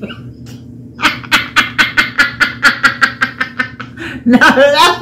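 An older woman laughs loudly and heartily close by.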